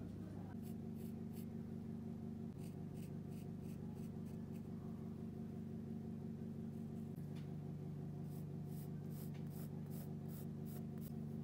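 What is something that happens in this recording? A pencil scratches on wood.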